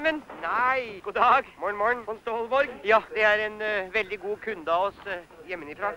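A man chats cheerfully.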